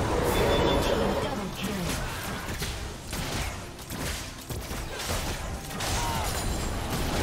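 Game spell blasts and hits crackle and thump in a fast fight.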